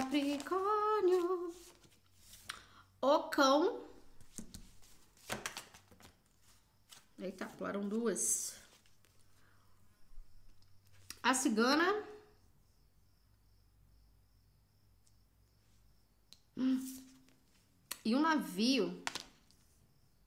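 A young woman speaks expressively and close up, in short bursts.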